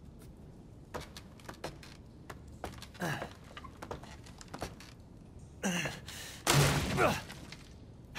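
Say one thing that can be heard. Wooden beams creak and knock as hands grab them to climb.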